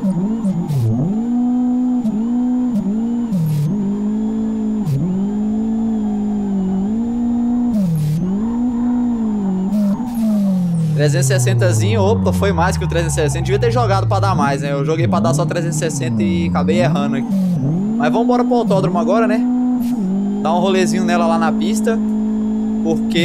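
A car engine revs hard and drops in pitch with each gear change.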